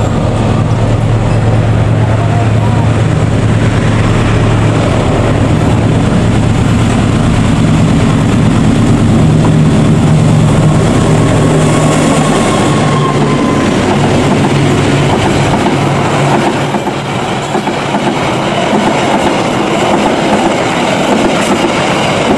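Train wheels clatter and rumble over the rails.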